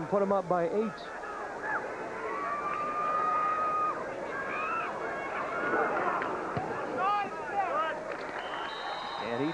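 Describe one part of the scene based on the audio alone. A crowd cheers outdoors.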